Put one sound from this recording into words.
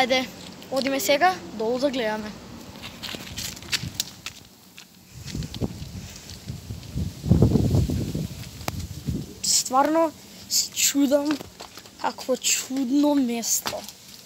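A boy talks with animation, close up.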